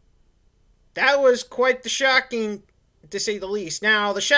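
A man speaks calmly and close to the microphone.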